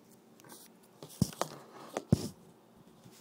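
Knocks and bumps sound close by as a phone is handled.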